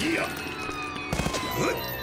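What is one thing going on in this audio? Gunshots fire in quick bursts.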